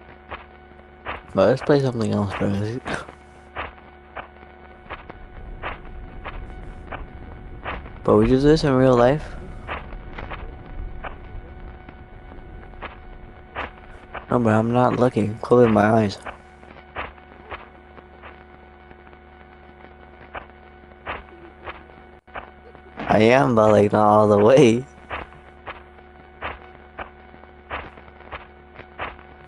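Footsteps crunch steadily through dry undergrowth.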